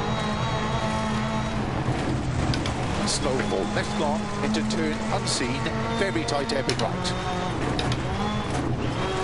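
Gravel spatters against the underside of a car.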